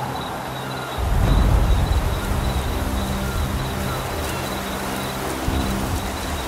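Dry brush rustles as someone pushes through it.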